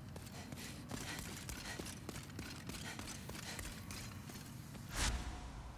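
Footsteps clatter on a stone floor.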